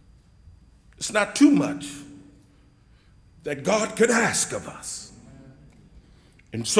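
An elderly man preaches with animation through a microphone in an echoing hall.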